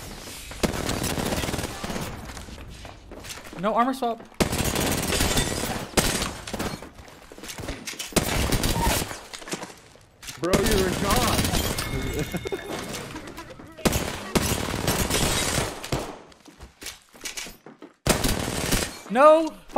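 Automatic gunfire bursts from a rifle in a video game.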